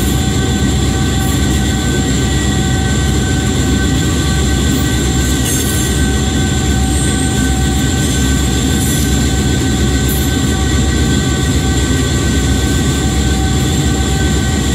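A diesel locomotive engine rumbles and hums steadily up close.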